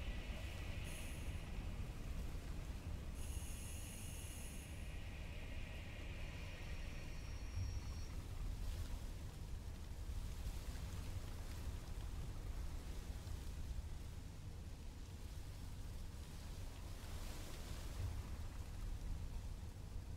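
A diesel locomotive engine rumbles steadily as a freight train rolls along.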